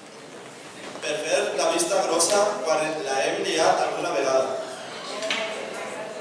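A young man speaks into a microphone over a loudspeaker in a large echoing hall.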